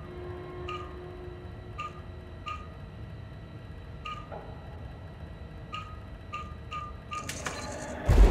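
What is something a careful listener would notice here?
An electronic terminal beeps in short, repeated chirps.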